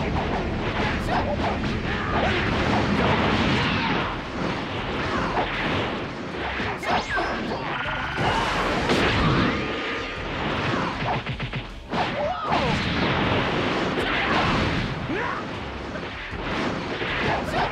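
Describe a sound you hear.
Punches and kicks land with sharp smacking thuds.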